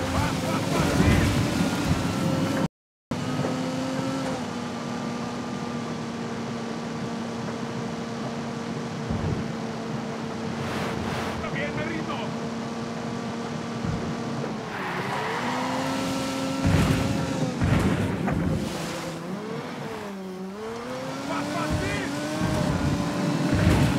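Tyres rumble and thump over rough ground.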